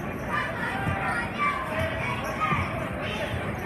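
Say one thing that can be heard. A basketball thumps on a wooden floor.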